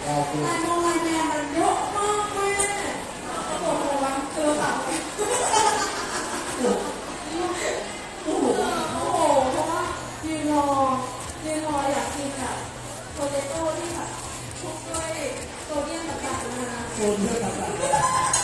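A woman speaks with animation through a microphone, echoing in a large hall.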